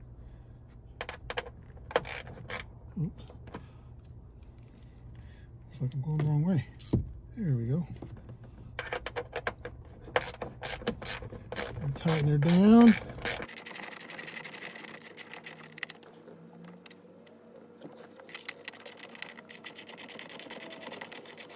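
A ratchet screwdriver clicks as it turns a bolt.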